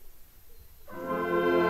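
A brass band suddenly starts playing loudly outdoors.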